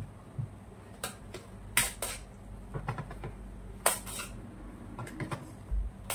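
A metal spatula clicks and taps against a cake turntable.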